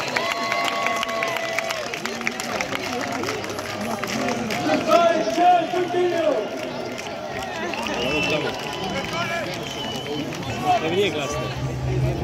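A large crowd of men and women chatters all around.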